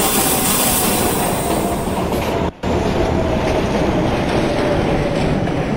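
A subway train rumbles steadily along the tracks.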